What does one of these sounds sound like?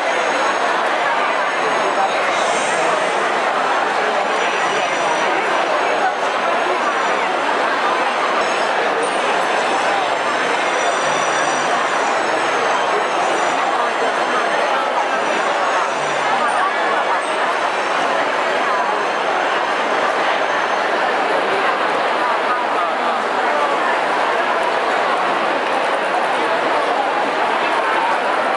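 A dense crowd chatters loudly all around, close by.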